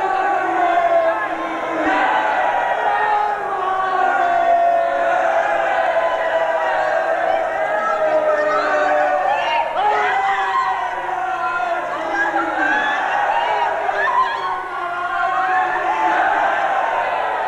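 A middle-aged man sings with long, drawn-out notes through a microphone.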